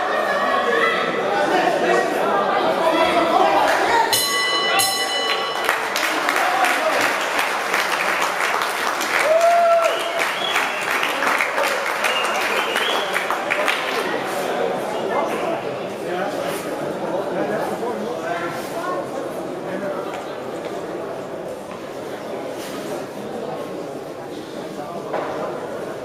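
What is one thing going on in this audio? A crowd chatters and cheers in an echoing hall.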